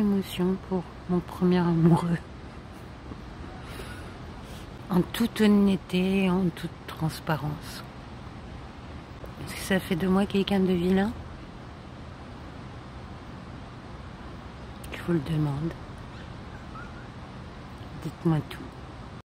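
A middle-aged woman talks calmly and close by, in short bursts with pauses.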